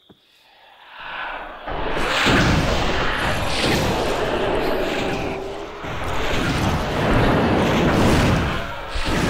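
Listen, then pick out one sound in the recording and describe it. Fire roars and crackles loudly.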